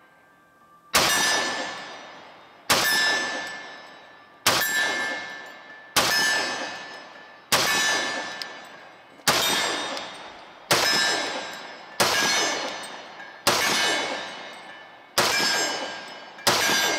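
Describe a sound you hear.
A pistol fires loud single shots at a steady pace outdoors, each ringing out and echoing away.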